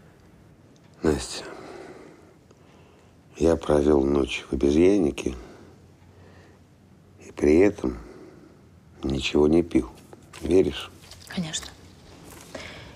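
A middle-aged man speaks slowly and quietly, close by.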